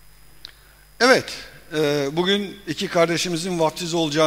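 A middle-aged man speaks with animation through a microphone in a reverberant hall.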